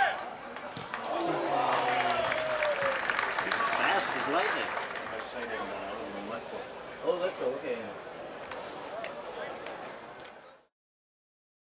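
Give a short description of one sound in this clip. A crowd of spectators cheers outdoors.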